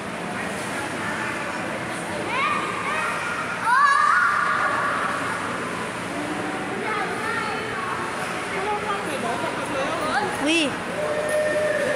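A man speaks loudly nearby in an echoing indoor space.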